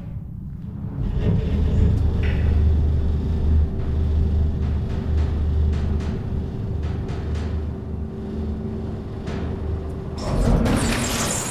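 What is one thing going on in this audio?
A lift hums and rumbles deeply as it travels.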